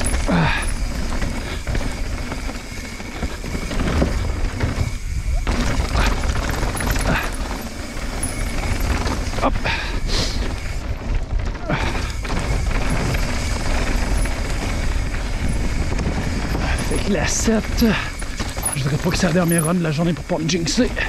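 A bicycle rattles and clanks over bumps.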